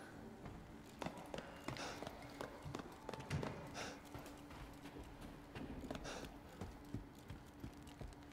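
Footsteps tap steadily on a hard floor in a large echoing hall.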